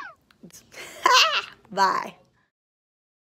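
A woman laughs loudly.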